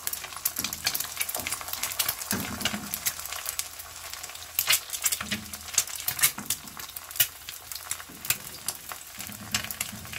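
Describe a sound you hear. A pan scrapes on a stove grate.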